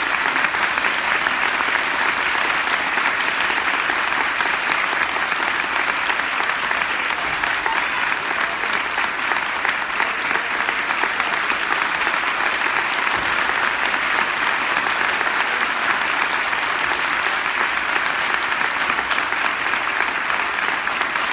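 A crowd claps steadily throughout a large hall.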